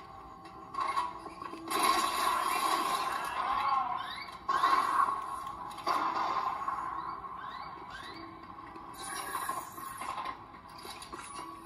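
Video game gunfire and effects play in loud bursts.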